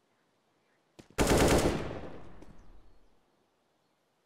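A rifle fires a short burst of shots that echoes away.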